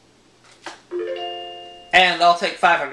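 A video game plays a short chiming jingle.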